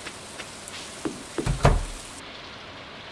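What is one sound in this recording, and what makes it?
A door opens with a thump.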